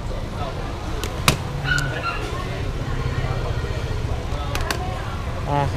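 Objects click and knock on a glass counter.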